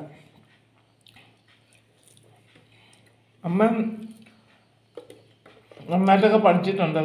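Fingers squish and mix rice on a plate.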